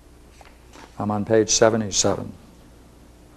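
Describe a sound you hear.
An elderly man speaks calmly and clearly close by.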